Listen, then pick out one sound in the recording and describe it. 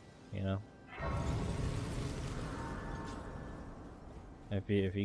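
A bright shimmering chime rings out.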